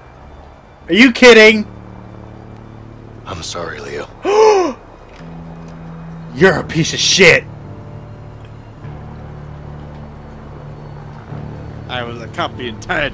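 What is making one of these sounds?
A younger man answers in a low, strained voice.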